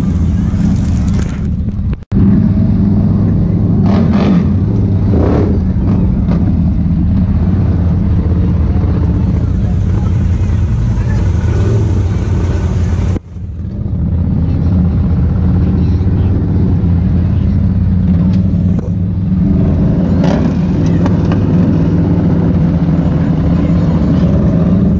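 Wind buffets loudly against the vehicle.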